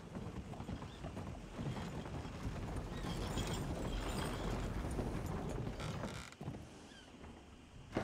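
Horse hooves clop on wooden boards.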